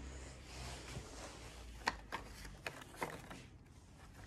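Paper rustles softly as a hand lifts a card.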